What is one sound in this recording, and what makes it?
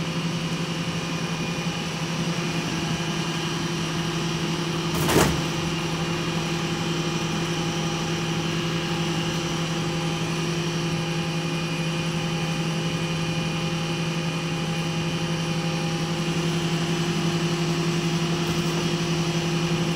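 A garbage truck engine idles with a steady low hum.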